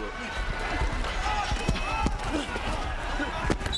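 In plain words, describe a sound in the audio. Football players thud into each other in a tackle.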